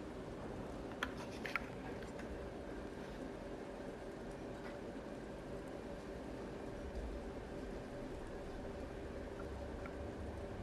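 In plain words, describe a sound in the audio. A menu cursor clicks softly.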